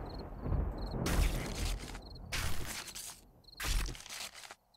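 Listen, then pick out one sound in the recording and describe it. A knife hacks wetly into flesh, several times.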